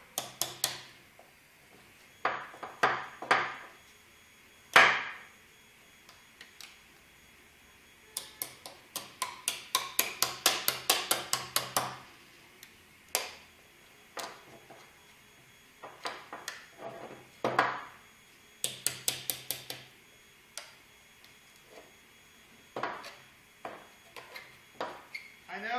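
A metal scraper scrapes and clicks against hard plastic in quick bursts.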